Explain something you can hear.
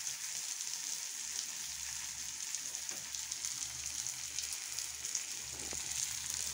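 Food sizzles and crackles steadily in a hot pan.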